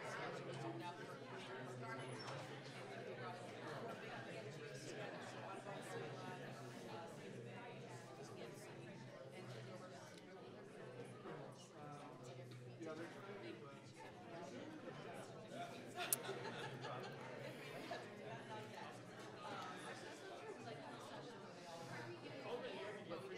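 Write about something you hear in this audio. Many men and women chat at once in a large room, a murmur of overlapping voices.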